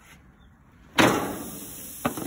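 Raw meat slaps down onto a hot grill.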